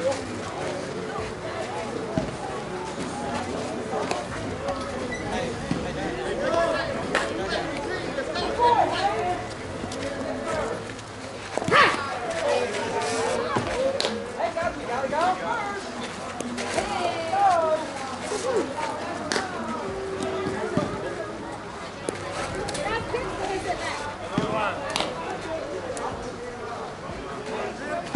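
Several men talk and call out nearby, outdoors.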